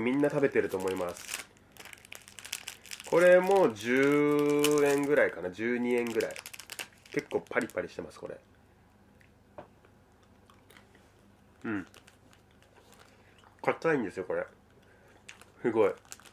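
A plastic snack wrapper crinkles in a man's hands.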